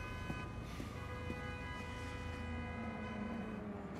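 A briefcase drops onto a hard floor.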